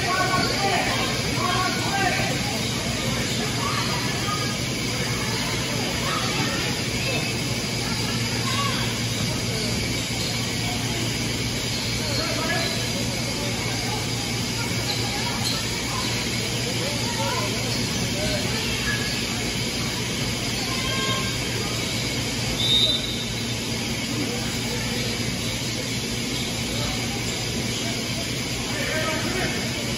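Players and spectators call out in the distance.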